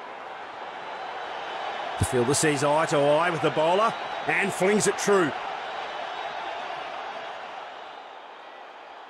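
A crowd cheers in a stadium.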